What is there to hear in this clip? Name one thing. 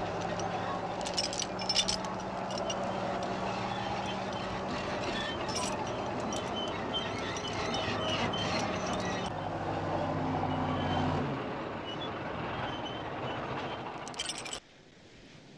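Metal tracks clank and rattle.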